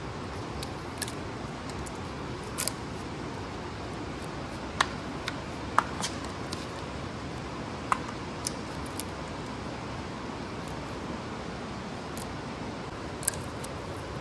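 Metal parts clink and tap lightly as they are handled.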